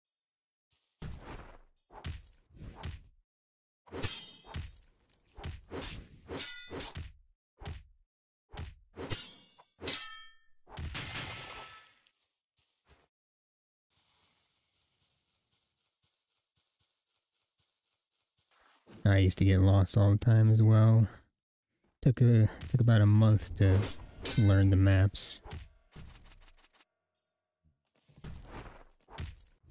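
Sharp blade hits strike a creature in quick bursts.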